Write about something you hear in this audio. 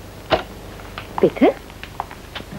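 A woman talks cheerfully nearby.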